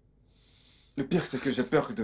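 Another man replies in a deep, calm voice.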